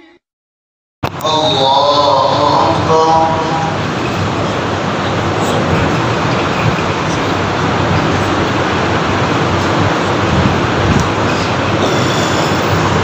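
A man recites loudly through a microphone.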